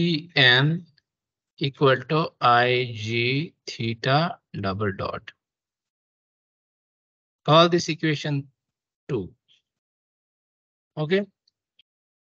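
A young man explains calmly in pauses, heard through an online call.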